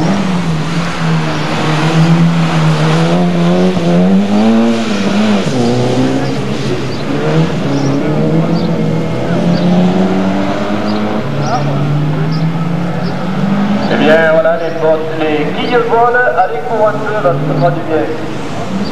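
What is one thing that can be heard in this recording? A rally car engine revs hard and roars through a turn.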